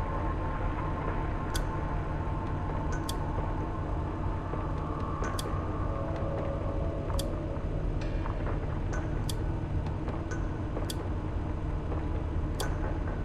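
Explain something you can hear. An electrical machine hums steadily and low.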